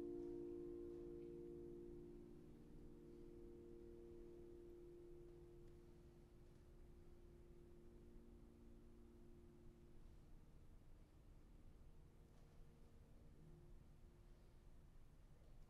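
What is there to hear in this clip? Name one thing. A piano plays softly, with held notes slowly fading.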